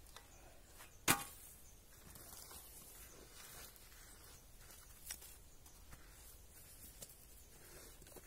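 Gloved hands scrape and brush loose soil.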